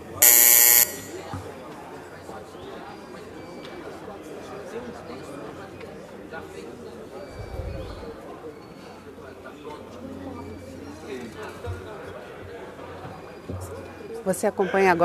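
Many people murmur and chatter quietly in a large room.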